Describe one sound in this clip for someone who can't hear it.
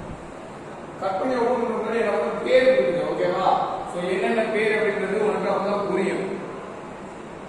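A man talks calmly and clearly.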